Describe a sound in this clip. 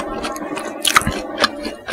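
Thick sauce drips and splats into a bowl.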